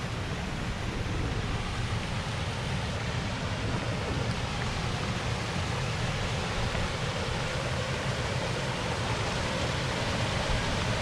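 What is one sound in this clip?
A small waterfall splashes and rushes, growing louder.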